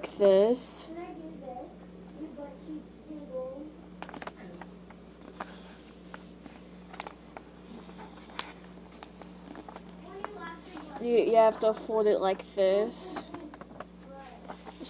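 Paper crinkles and rustles as it is folded.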